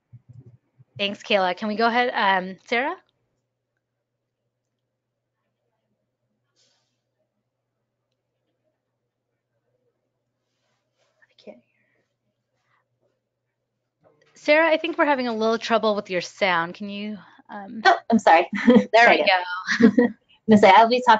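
A second woman speaks calmly through an online call.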